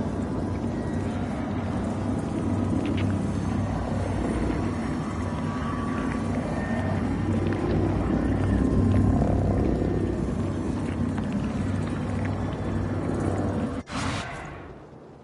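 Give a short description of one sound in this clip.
Heavy rain and wind roar outdoors.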